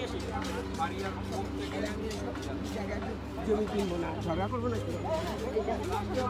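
Several women talk with animation nearby, outdoors.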